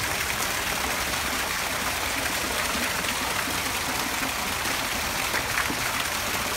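Water splashes steadily from a fountain spout into a basin.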